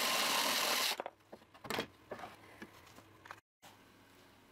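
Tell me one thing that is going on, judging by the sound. Wooden pieces knock and clatter against each other.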